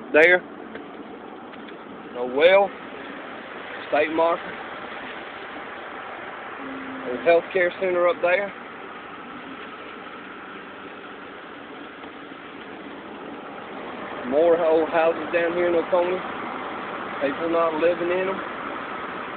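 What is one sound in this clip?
A woman talks close by inside a car.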